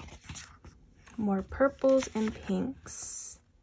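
Paper rustles and slides under hands.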